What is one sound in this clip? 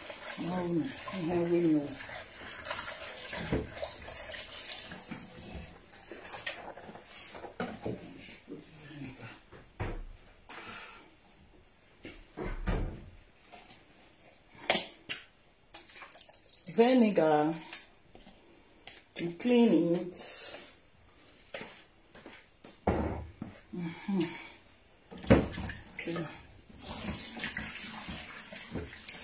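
Dishes clink and clatter in a sink.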